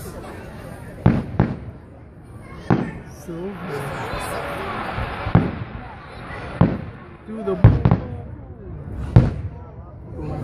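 Fireworks bang and boom overhead, echoing outdoors.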